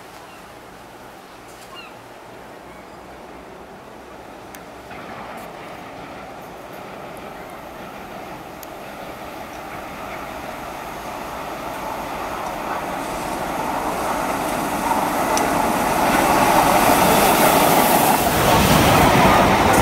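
A steam locomotive chuffs as it approaches and grows louder.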